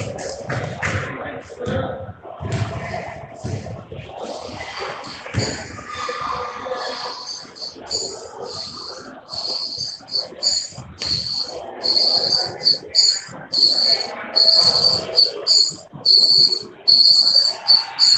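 Young women and girls chatter and call out in a large echoing hall.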